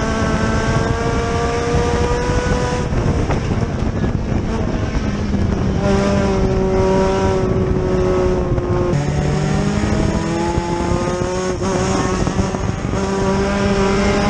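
A race car engine roars loudly, close up, rising and falling as it speeds up and slows.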